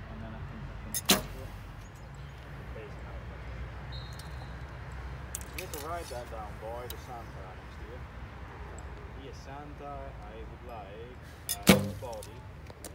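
A bow string snaps forward with a sharp twang as an arrow is shot.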